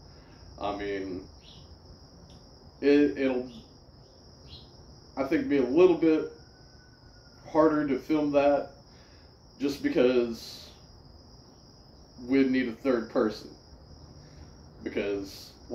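A man talks close by in short bursts, with pauses between.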